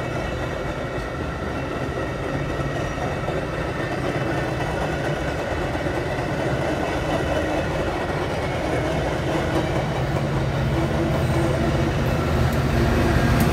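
A passenger train rumbles past close by, its wheels clattering on the rails.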